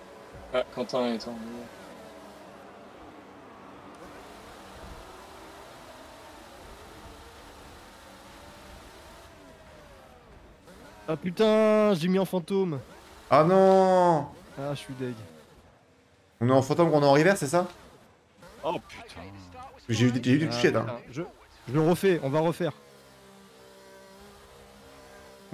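A racing car engine whines and revs in the background.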